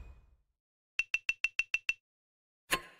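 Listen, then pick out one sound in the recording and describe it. Quick electronic chimes tick in a rapid run.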